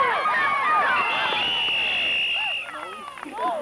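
A referee's whistle blows long and shrill.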